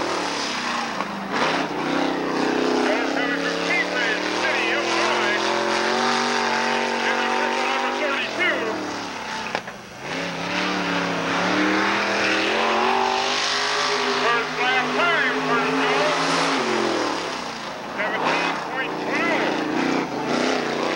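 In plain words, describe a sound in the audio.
A race car engine roars loudly, rising and falling as it revs.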